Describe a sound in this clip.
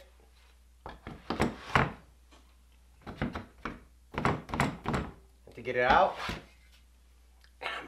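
A metal hand plane knocks and clatters against a wooden rack.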